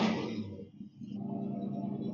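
Race car engines idle with a low rumble.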